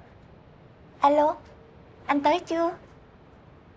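A young woman speaks cheerfully into a phone, close by.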